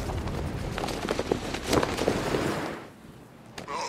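Wind rushes past during a fast glide.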